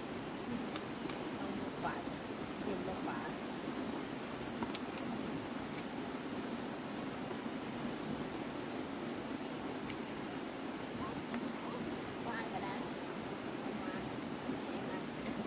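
A knife scrapes the skin off a root vegetable.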